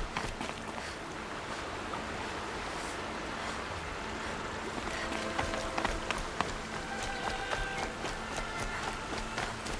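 Footsteps crunch on stony ground.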